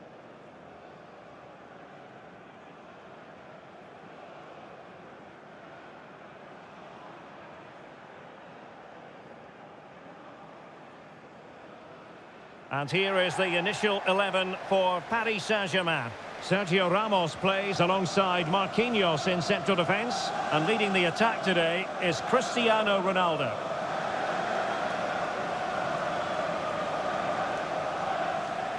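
A large stadium crowd murmurs steadily in the distance.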